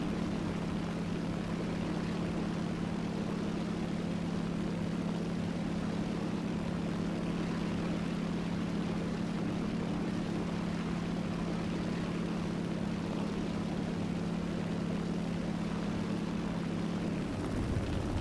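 A radial-engine propeller fighter plane drones in flight.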